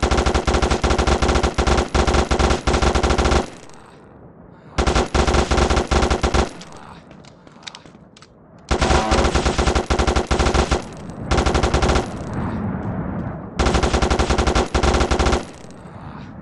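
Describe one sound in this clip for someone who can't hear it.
Rapid bursts of automatic gunfire rattle loudly.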